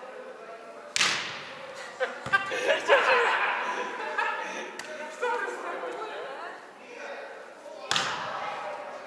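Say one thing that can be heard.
A volleyball is struck with a sharp slap in a large echoing hall.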